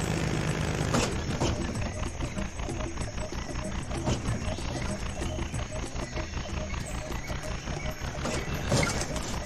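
A cart bumps and scrapes against a metal fence.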